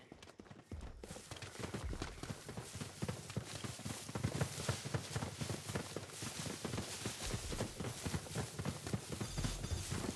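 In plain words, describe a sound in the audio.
Footsteps crunch and rustle through dense plants at a steady walking pace.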